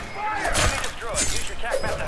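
A blade slashes into a body with a wet thud.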